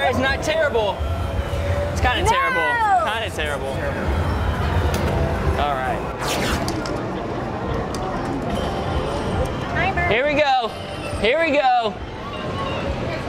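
Arcade machines chime and jingle in a noisy room.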